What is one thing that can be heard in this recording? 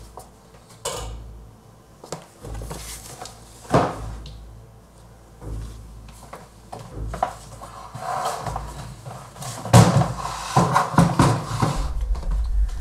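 Cardboard rustles and thumps as a box is handled.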